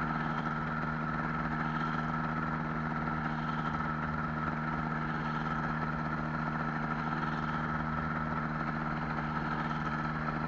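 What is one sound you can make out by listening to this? A small aircraft's propeller engine drones steadily up close.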